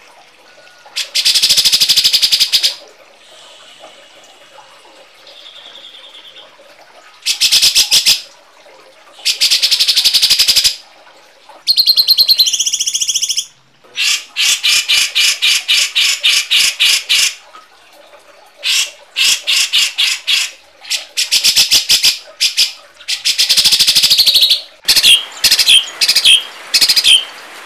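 Songbirds sing loud, harsh, rapid chattering bursts close by, with short pauses between them.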